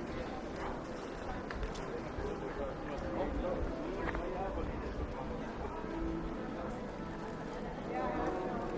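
A crowd of people chatter nearby in a busy street.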